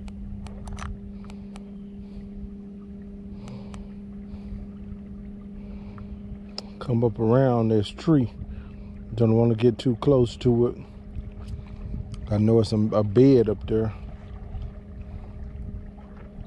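An electric boat motor hums steadily.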